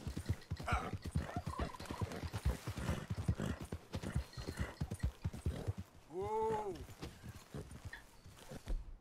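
Horse hooves pound quickly on the ground at a gallop.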